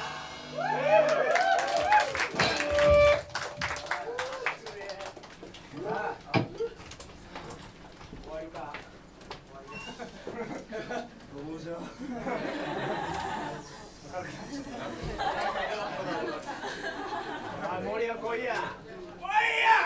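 A crowd shouts and cheers close by, echoing in a large room.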